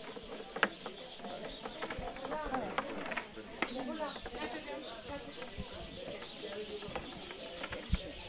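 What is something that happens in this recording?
A wooden rolling pin rolls and taps on a floury table.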